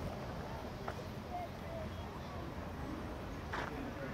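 A broom sweeps over dirt ground.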